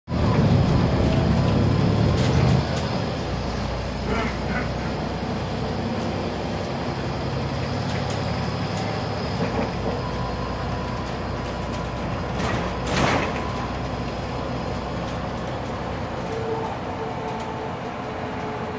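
The bus interior rattles and creaks over the road.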